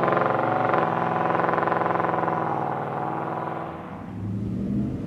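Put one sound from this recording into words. A pickup truck's engine rumbles and revs as it approaches on the road.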